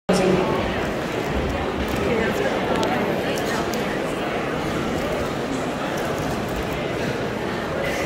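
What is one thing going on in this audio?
Music plays loudly over loudspeakers in a large echoing hall.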